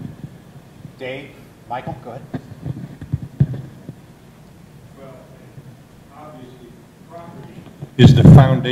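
A man speaks calmly at a distance.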